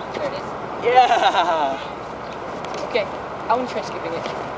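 A teenage boy laughs loudly close by.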